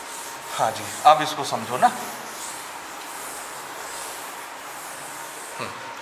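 Chalk scratches and taps on a board.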